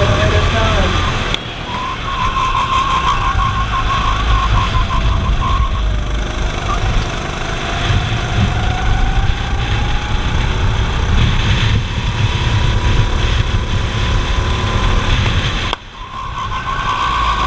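Wind rumbles past the driver.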